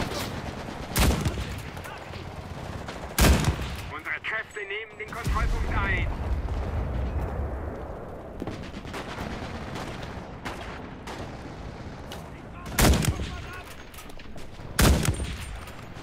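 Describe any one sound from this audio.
A scoped rifle fires single sharp shots.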